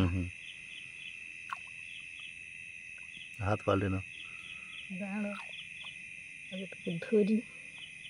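A hand presses softly into wet mud.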